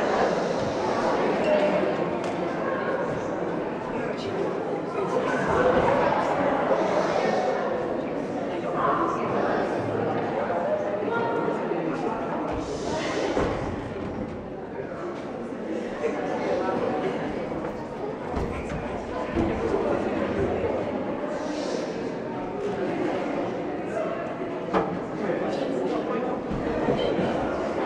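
Teenage boys and girls speak and call out in an echoing hall.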